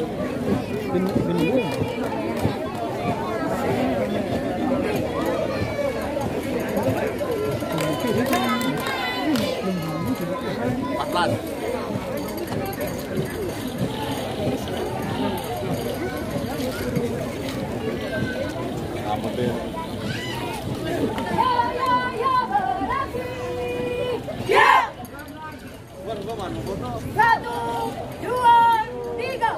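Footsteps of a marching troop tap on the road.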